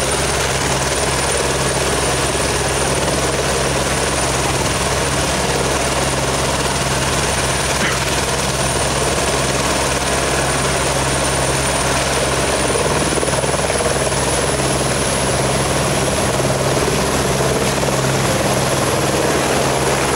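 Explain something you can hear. A helicopter's engine whines and its rotor thumps steadily close by.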